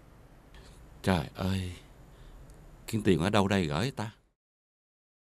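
An older man speaks in a close, worried voice.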